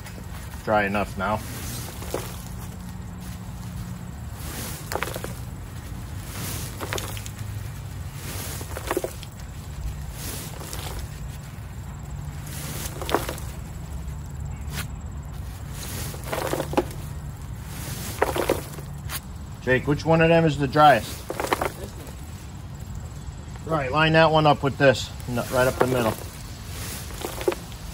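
A wire cart rattles as it is pushed over rough ground.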